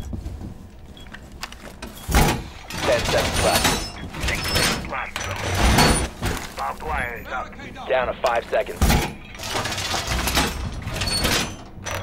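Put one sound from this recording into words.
Metal panels clank and thud as a wall is reinforced.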